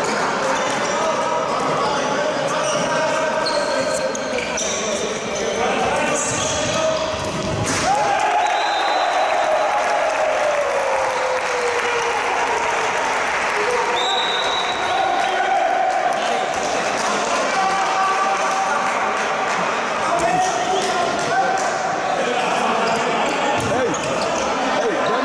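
Sneakers squeak on a court floor as players run.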